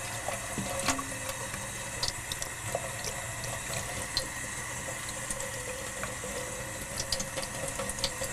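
Water runs steadily from a tap into a metal sink.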